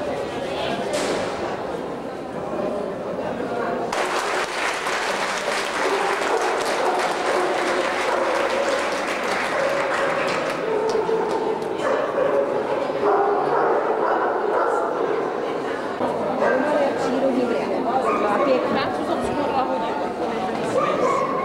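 A crowd of men and women chatters in an echoing hall.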